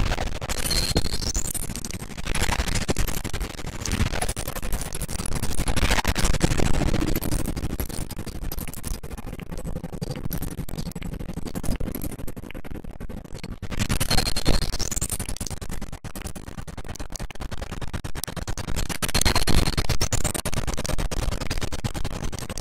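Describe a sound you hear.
Objects smash and clatter as they break apart.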